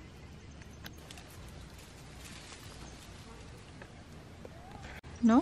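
Small animals patter over dry leaves.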